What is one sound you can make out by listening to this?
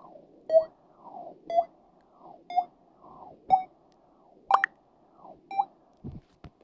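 Short electronic blips sound about once a second, like a countdown.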